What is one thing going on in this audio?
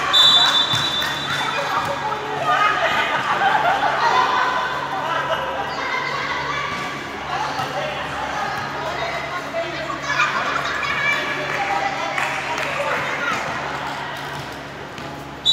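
Young women call out and chatter in a large echoing hall.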